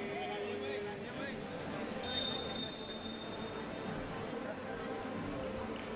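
Several men talk and call out to one another close by.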